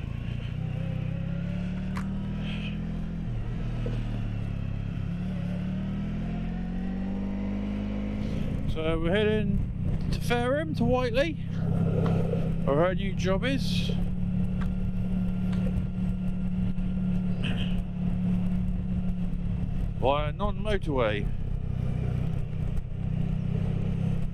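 A motorcycle engine hums steadily at low speed, up close.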